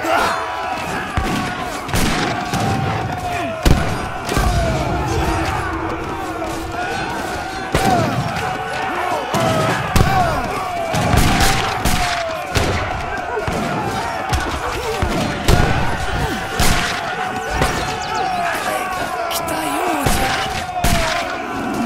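Gunshots crack repeatedly in a battle.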